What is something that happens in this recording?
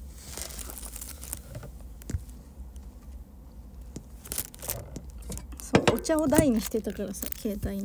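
Handling noises rustle and knock against the microphone.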